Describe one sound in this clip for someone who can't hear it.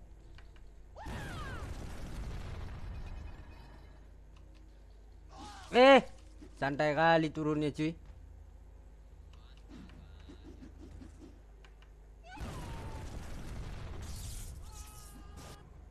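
Dusty bursts whoosh and rumble in a game fight.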